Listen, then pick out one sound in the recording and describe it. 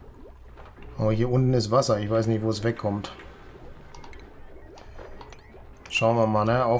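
A middle-aged man talks calmly into a close microphone.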